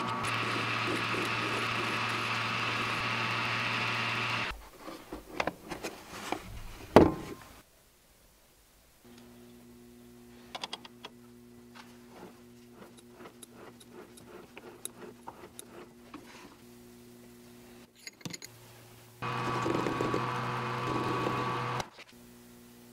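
A lathe motor hums and whirs steadily.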